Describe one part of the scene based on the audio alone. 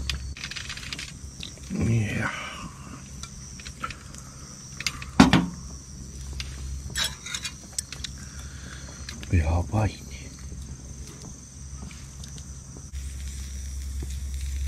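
Meat sizzles softly on a grill.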